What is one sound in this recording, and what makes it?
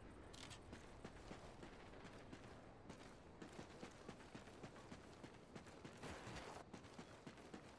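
Footsteps tread on the ground at a steady walking pace.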